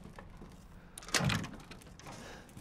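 A wooden door is pushed open.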